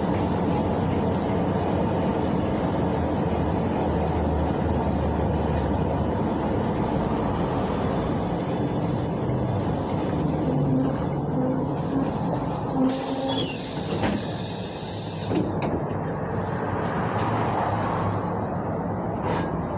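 A bus engine rumbles steadily as the bus drives along.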